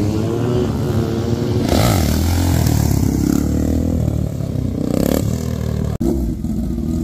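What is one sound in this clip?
A motorcycle engine roars past.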